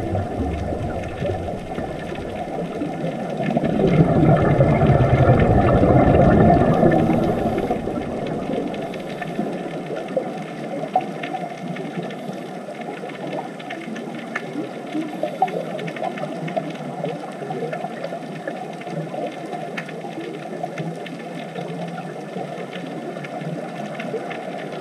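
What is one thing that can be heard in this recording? Air bubbles from scuba divers gurgle and crackle underwater.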